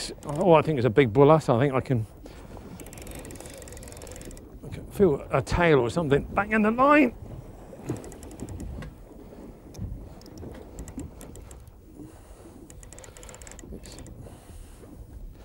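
Waves wash against a boat's hull.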